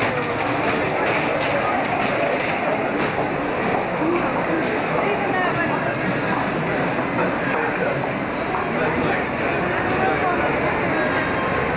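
A dense crowd chatters all around.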